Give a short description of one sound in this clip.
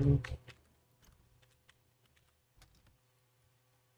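Soft interface clicks sound as a game menu opens.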